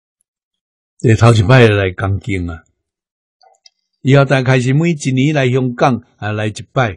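An elderly man speaks calmly and warmly, close to a microphone.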